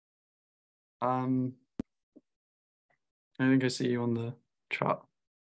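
A young man speaks calmly in short bursts through an online call.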